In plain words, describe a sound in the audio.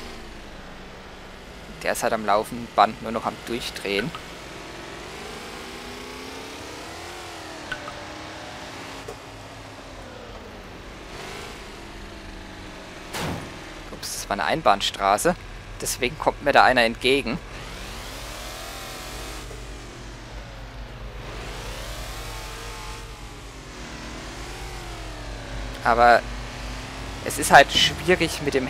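A V8 car engine rises and falls in pitch as the car accelerates through the gears and slows.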